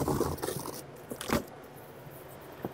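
A wooden crate lid scrapes and knocks as it is lifted off.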